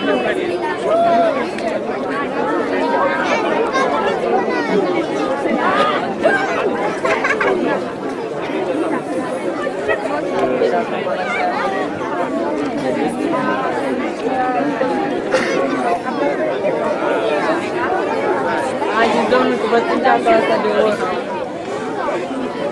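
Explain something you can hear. A crowd of children chatters and calls out nearby outdoors.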